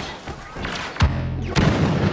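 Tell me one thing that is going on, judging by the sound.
A blaster rifle fires a shot.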